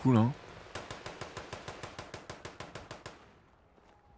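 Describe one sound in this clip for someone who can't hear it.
An automatic rifle fires in a rapid burst.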